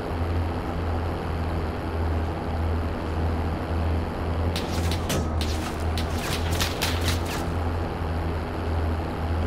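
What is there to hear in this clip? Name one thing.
A military cargo truck's engine drones as it drives along a street.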